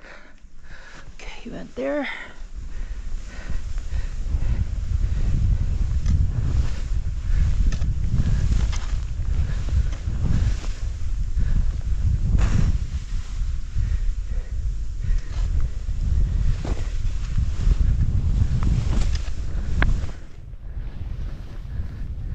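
Skis hiss and scrape over snow.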